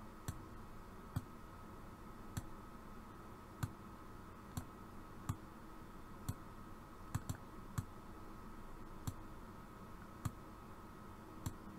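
A computer mouse clicks every second or so.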